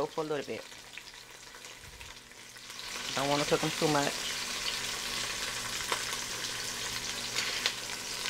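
Metal tongs click against a pot.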